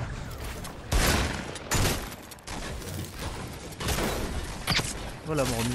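Gunshots fire in loud, sharp bangs.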